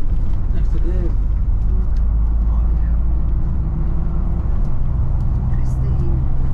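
A vehicle's engine rumbles steadily as it drives along a road.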